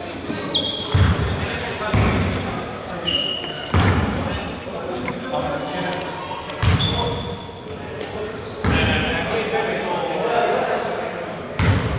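A basketball bounces on a wooden floor with a booming echo.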